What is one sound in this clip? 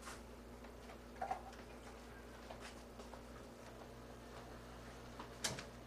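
Food crinkles and rustles as it is handled.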